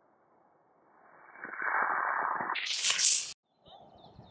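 A rocket hisses loudly as it launches from the ground.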